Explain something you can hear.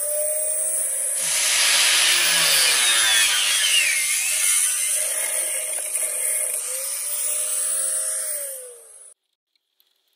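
An angle grinder whines loudly as it cuts through metal.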